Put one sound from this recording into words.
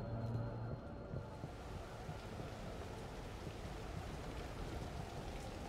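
Footsteps thud softly on a carpeted floor.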